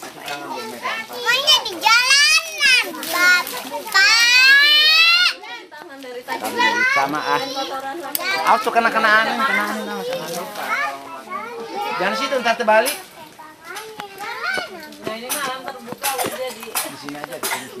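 Young children talk and call out excitedly nearby.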